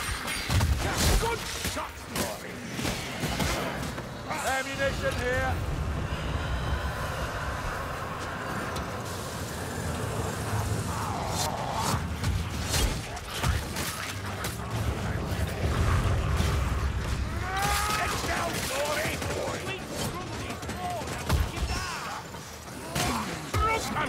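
Blades slash and strike creatures in quick, heavy blows.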